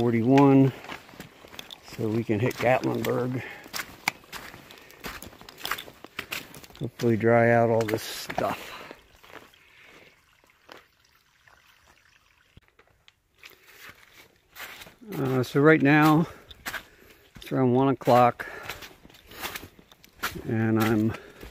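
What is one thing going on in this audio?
Footsteps crunch on snow and wet stones.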